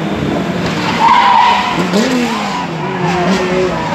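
Tyres squeal and skid as cars slide off onto dirt.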